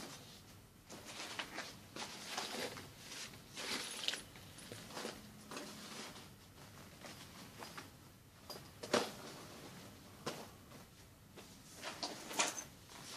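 Leather bags rustle and rub as hands handle them.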